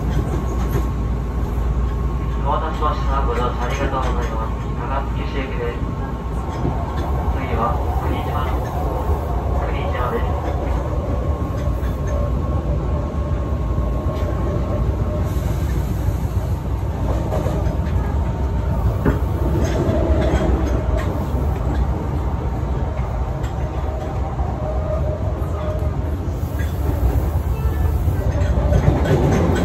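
A train rumbles steadily along the tracks from inside a carriage.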